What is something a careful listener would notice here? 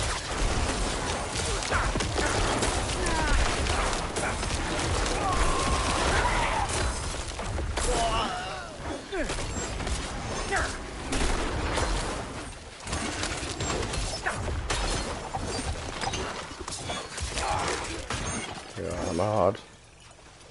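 Blows and spell bursts crash rapidly in a fierce fight.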